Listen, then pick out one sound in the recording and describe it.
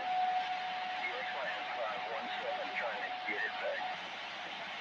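A steady tone beeps from a radio loudspeaker.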